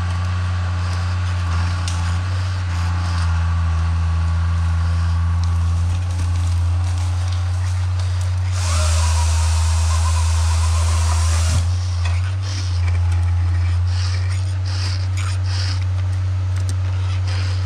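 A chainsaw idles with a low, steady rumble close by.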